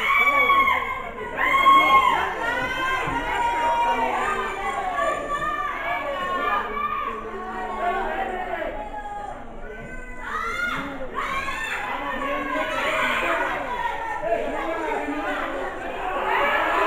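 A crowd of men and women shouts and cheers loudly nearby.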